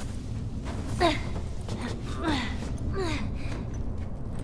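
A young girl grunts with effort while climbing.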